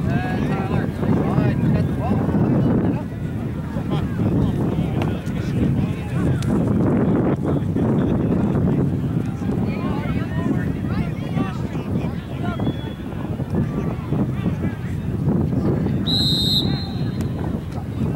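Boys shout and call to each other across an open field.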